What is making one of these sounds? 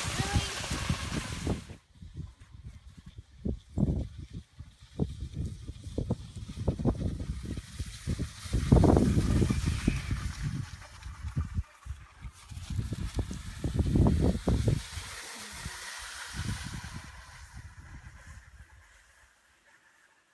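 Skis swish and scrape over snow.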